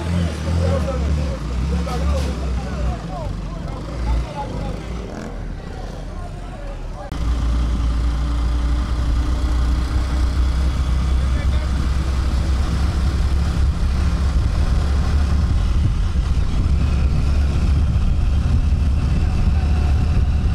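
Motorbike engines rumble past.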